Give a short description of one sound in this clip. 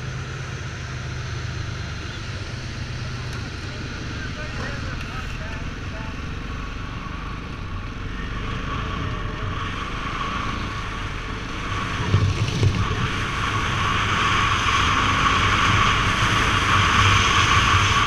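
A motorcycle engine hums steadily as the bike rides along a road.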